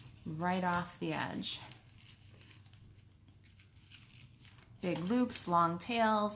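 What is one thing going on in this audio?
Card paper rustles softly as it is handled.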